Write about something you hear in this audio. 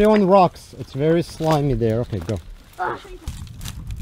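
Footsteps crunch on dry reeds and stones.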